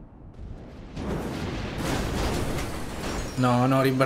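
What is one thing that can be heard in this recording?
A rocket booster roars as a car flies.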